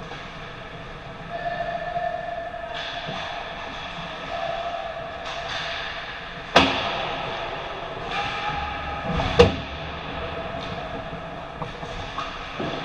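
Skate blades scrape and carve across the ice.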